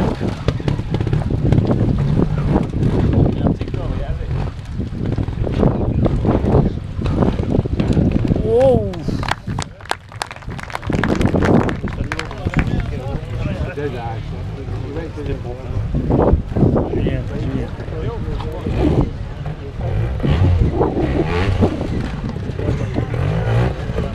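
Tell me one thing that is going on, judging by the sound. Motorcycle engines rev and sputter on rough ground.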